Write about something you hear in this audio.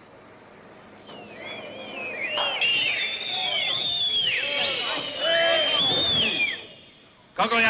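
A crowd whistles and shouts.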